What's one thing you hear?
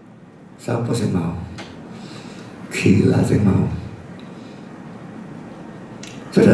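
A middle-aged man speaks calmly into a microphone in a room with some echo.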